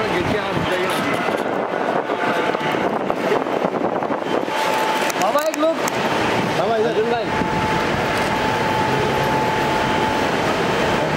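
Several men talk and call out loudly nearby.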